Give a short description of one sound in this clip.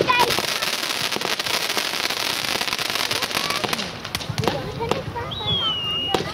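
Fireworks burst with sharp bangs.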